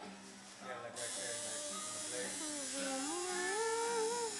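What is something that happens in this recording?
A tattoo machine buzzes close by.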